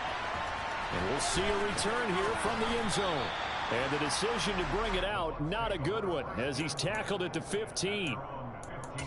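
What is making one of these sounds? A stadium crowd roars and cheers.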